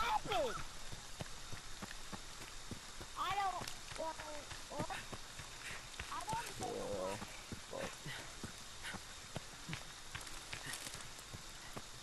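Footsteps crunch through leaves and undergrowth.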